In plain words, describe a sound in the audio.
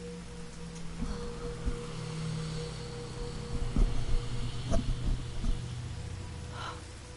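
A car engine rumbles and draws closer.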